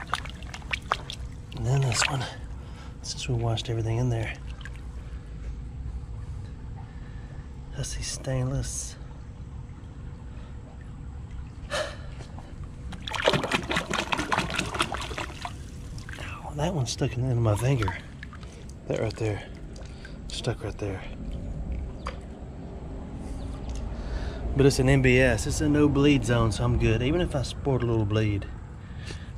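A shallow stream trickles and gurgles over stones.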